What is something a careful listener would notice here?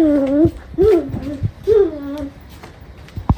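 A toddler girl babbles in a high voice close by.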